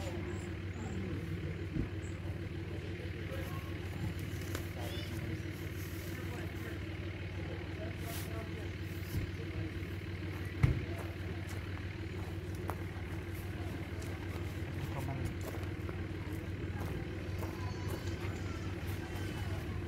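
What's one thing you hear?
Tent fabric rustles and flaps as a man handles it.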